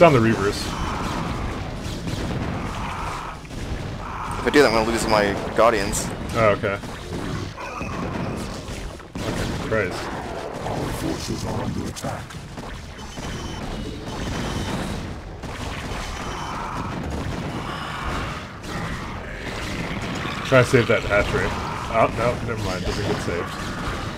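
Game weapons fire and explosions crackle during a battle.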